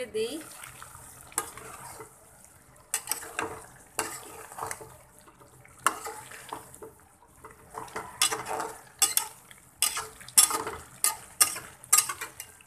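A spatula scrapes and clinks against a metal pot while stirring.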